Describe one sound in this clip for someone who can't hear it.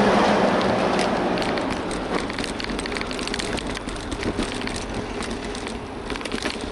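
A bicycle rattles and clatters over a bumpy street.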